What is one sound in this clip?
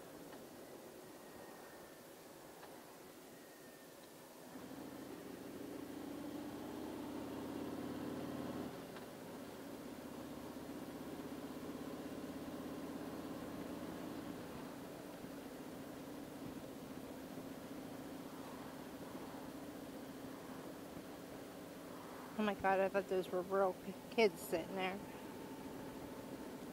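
A motorcycle engine rumbles steadily, rising as it speeds up and dropping as it shifts.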